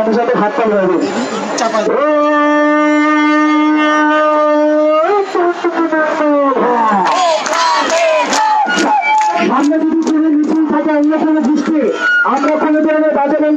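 A crowd of young women chants slogans loudly outdoors, close by.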